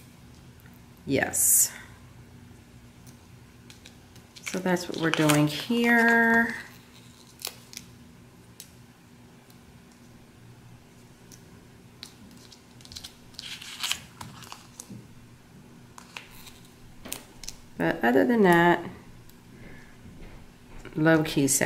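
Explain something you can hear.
A sticker peels off a backing sheet with a soft, papery crackle.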